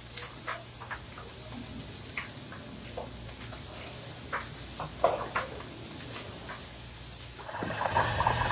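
A fire crackles and pops close by.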